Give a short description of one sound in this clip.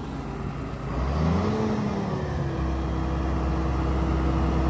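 A tractor engine revs up as the tractor starts moving.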